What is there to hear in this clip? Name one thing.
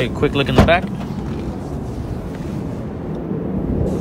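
A car's tailgate latch clicks open.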